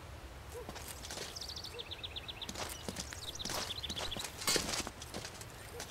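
Steel swords clash and ring sharply.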